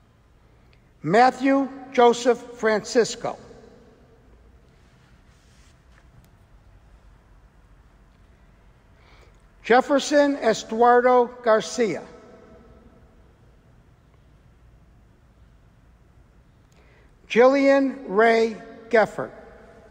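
A man reads out names calmly through a microphone, with pauses between them.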